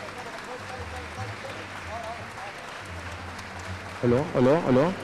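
A large crowd murmurs softly in an echoing hall.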